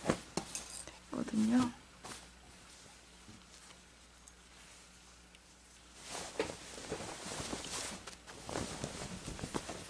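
Cloth rustles as it is moved and shaken.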